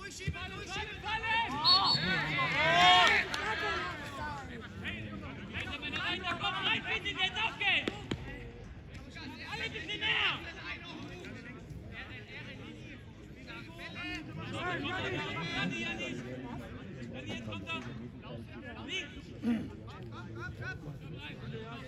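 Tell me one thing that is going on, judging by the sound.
Young men shout and call to one another outdoors across an open field.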